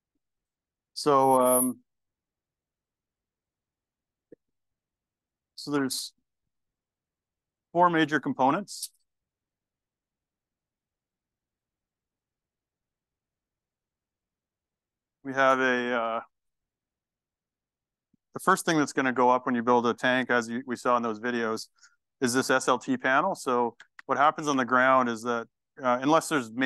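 A man speaks calmly into a microphone, with long pauses.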